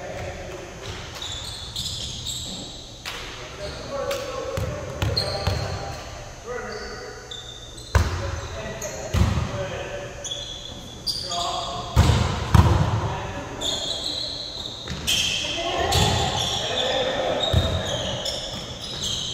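Men shout and call out to each other across a large echoing gym.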